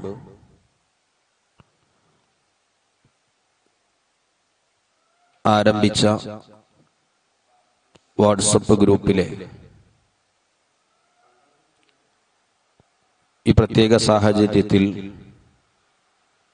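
A young man speaks slowly and solemnly into a microphone, in short phrases with long pauses.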